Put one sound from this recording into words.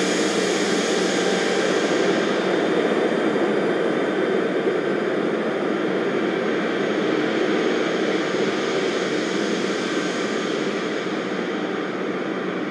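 A jet engine hums steadily at idle nearby.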